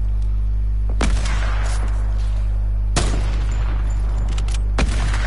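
Rifle shots crack loudly and echo, a few seconds apart.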